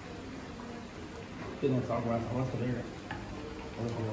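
A hot pot is set down on a table with a clunk.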